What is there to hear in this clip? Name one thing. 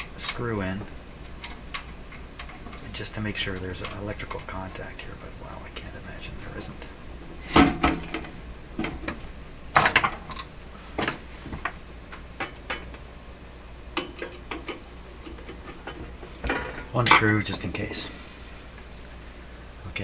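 Hands knock and tap against a metal box.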